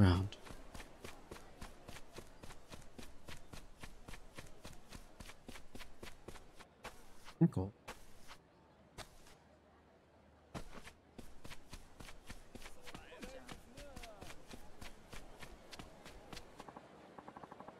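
Footsteps run quickly and steadily over packed dirt.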